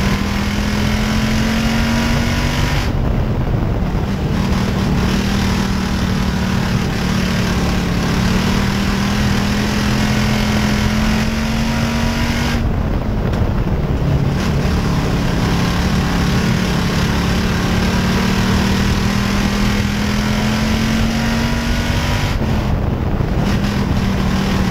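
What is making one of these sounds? A race car engine roars loudly at high revs, rising and dropping with each lap.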